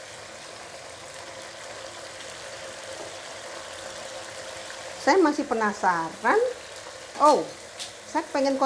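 Sauce simmers and bubbles gently in a pan.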